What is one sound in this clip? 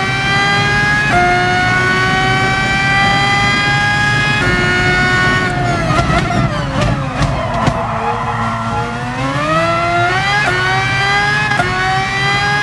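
A racing car engine screams at high revs, rising in pitch with each gear and dropping low as the car slows for a corner.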